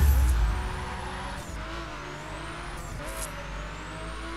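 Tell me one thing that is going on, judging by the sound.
Race car engines roar and rev.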